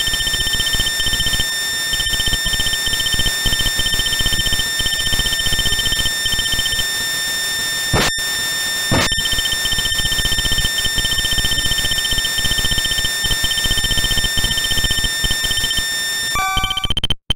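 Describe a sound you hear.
Quick electronic beeps chatter as text is typed out.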